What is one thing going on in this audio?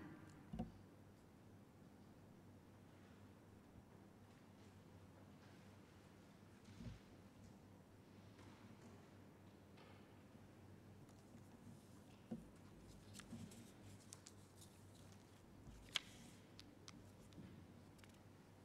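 A young woman speaks softly and slowly through a microphone.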